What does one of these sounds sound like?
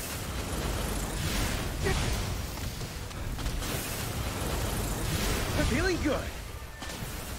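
Fiery magic blasts whoosh and crackle.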